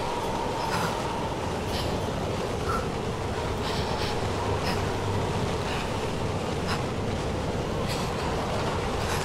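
A strong wind howls steadily in a snowstorm.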